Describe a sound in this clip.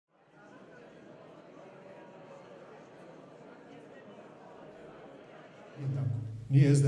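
A large audience murmurs quietly in an echoing hall.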